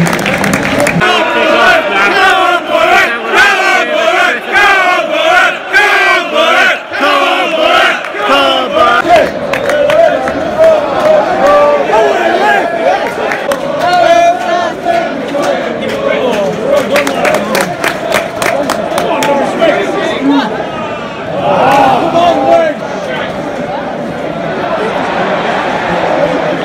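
A stadium crowd sings and chants loudly all around.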